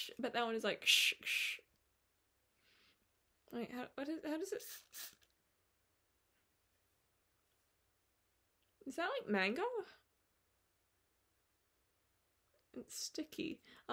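A young woman talks with animation close to a microphone, in short bursts with pauses.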